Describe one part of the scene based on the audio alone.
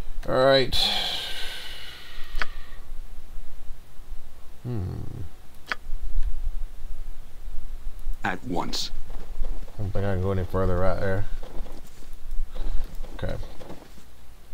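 A middle-aged man talks casually into a close microphone.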